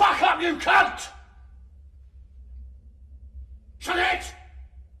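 A man speaks forcefully and close by.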